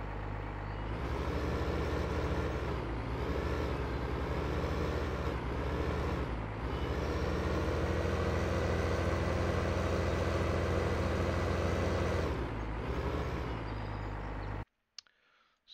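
A tractor engine grows louder and revs up and down as it works harder.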